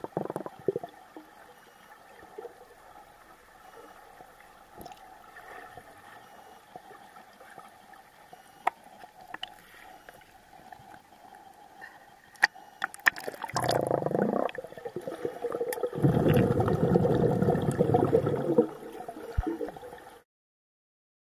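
Water murmurs and bubbles, heard muffled from underwater.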